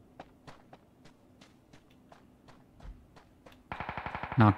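Footsteps rustle through tall grass at a steady pace.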